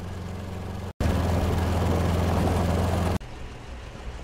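An armoured car's engine rumbles loudly close by.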